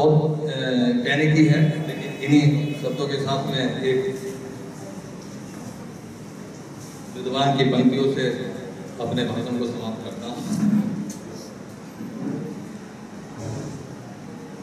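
A middle-aged man speaks into a microphone over a loudspeaker, with pauses.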